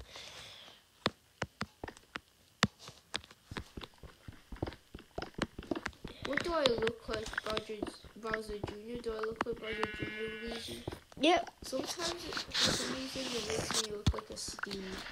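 Keyboard keys tap and click in quick succession.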